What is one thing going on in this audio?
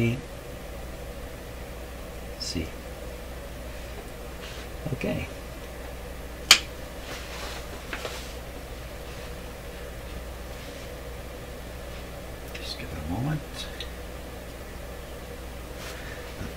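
An electrical device hums steadily.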